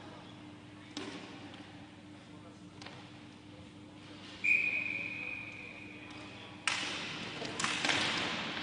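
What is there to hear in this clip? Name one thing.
Hockey sticks clack against each other and on the ball.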